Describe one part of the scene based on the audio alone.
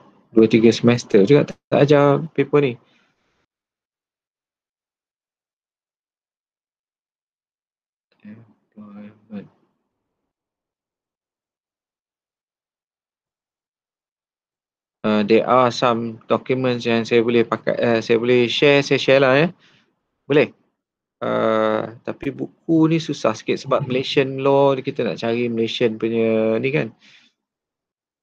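A man speaks calmly over an online call.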